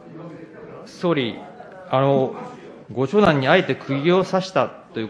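A man speaks firmly and loudly into a microphone.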